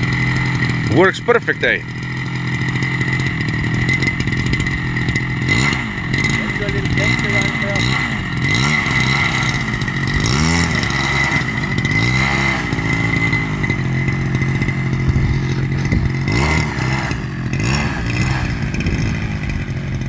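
A model airplane engine buzzes steadily, its pitch rising and falling as it revs.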